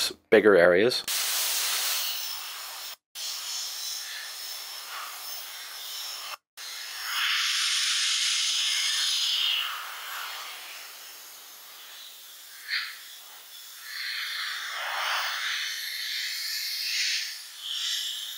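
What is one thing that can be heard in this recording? An airbrush hisses as it sprays in soft bursts.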